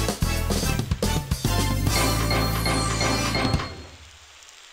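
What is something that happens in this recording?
A rapid electronic ticking and jingle plays.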